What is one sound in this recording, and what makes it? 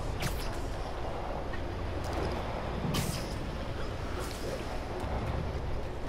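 Wind rushes past steadily during fast swinging through the air.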